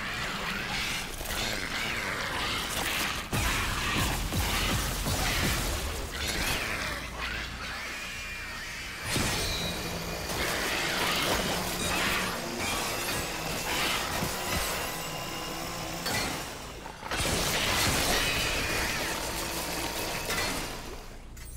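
A futuristic weapon fires in sharp bursts.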